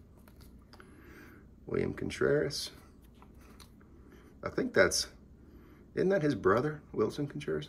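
Stiff cards slide and rustle softly between fingers.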